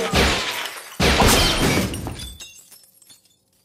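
Glass shatters and breaks apart.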